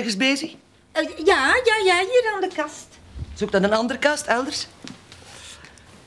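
An older woman speaks in reply, close by.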